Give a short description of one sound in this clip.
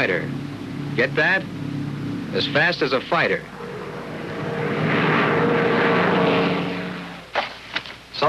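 An airplane engine drones steadily.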